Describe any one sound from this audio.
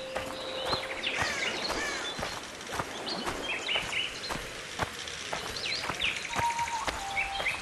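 Footsteps crunch steadily through leafy undergrowth.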